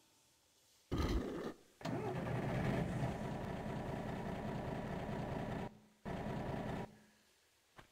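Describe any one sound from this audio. A mine cart rumbles along rails.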